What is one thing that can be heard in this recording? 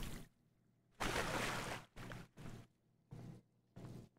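Footsteps tap on a hard tiled floor.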